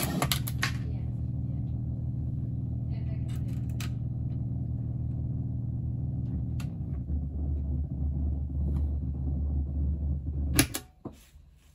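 A synthesizer plays a low, droning pulsing tone that changes pitch and then stops.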